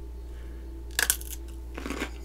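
A cucumber snaps with a crisp crunch as a woman bites it.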